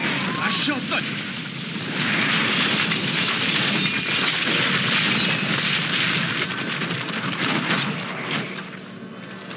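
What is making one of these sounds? Spells crackle and explode in a fast, noisy battle.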